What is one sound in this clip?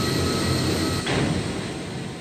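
Wooden wardrobe doors slam shut.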